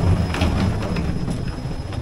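Suitcase wheels rumble along the floor.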